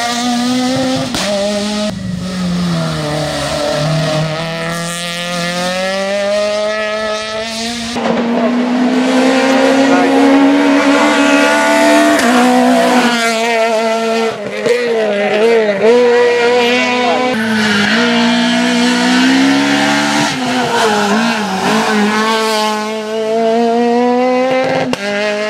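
A rally car engine revs hard and roars as the car speeds past.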